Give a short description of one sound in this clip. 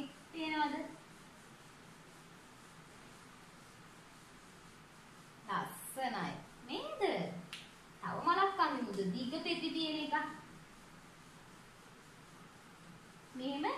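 A young woman speaks calmly and warmly, close by.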